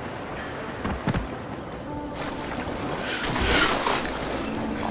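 Water splashes loudly as a swimmer dives in.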